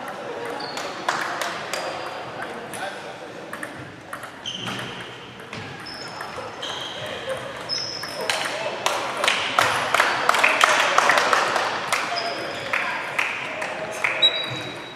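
Table tennis balls click sharply on tables and paddles.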